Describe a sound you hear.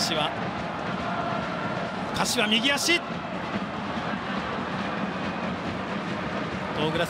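A large crowd murmurs steadily in an open stadium.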